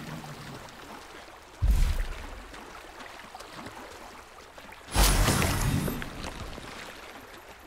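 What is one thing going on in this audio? Water splashes as someone wades through a shallow stream.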